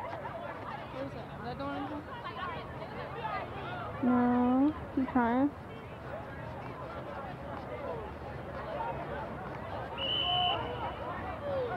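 A crowd of young men and spectators shout and chatter outdoors.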